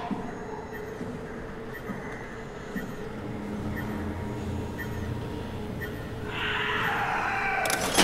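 A low electrical hum drones steadily from machinery.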